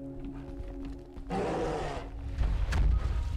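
A large bear roars loudly and gruffly.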